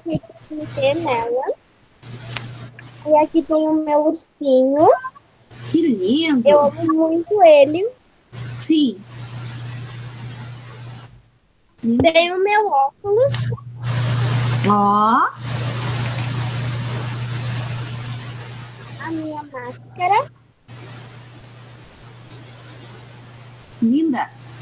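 A girl speaks with animation over an online call.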